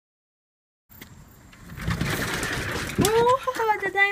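A sliding door rattles open.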